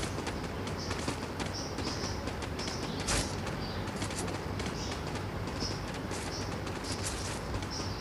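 Footsteps run quickly over hard ground and metal steps.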